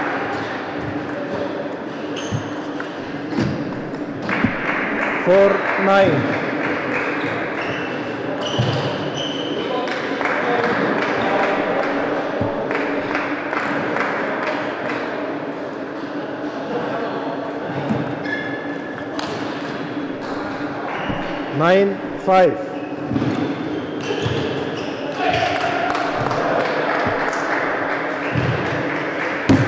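A ball clicks back and forth across a table tennis table.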